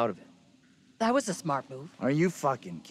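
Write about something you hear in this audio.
A woman speaks briefly.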